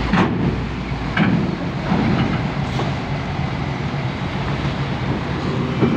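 A truck drives onto a ship's metal ramp.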